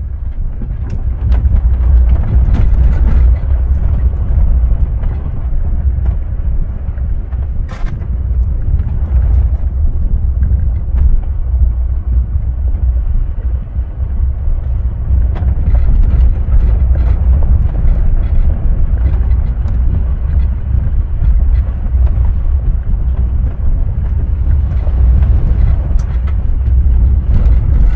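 A vehicle's engine rumbles low and steady as it drives slowly.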